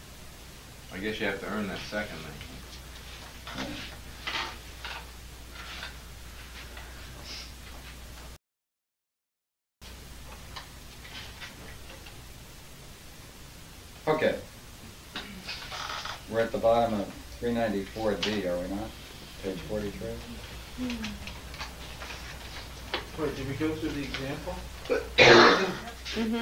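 An elderly man speaks slowly and calmly, close by, with pauses.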